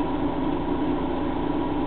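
Water rushes and splashes through a pipe.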